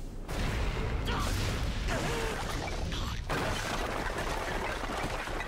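A grappling cable whirs and hisses as it reels in.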